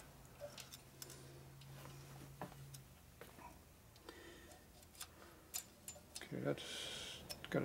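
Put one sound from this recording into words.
Small metal parts click and tap softly.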